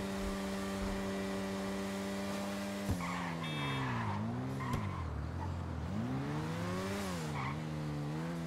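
A motorcycle engine drones steadily, then revs up and down as it shifts gears.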